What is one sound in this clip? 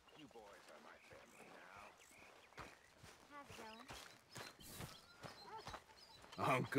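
Footsteps crunch over grass and dirt.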